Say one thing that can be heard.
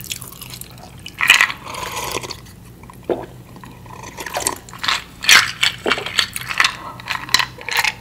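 A young woman sips and swallows a drink up close.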